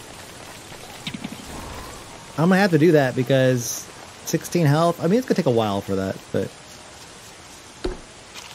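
Light rain patters steadily.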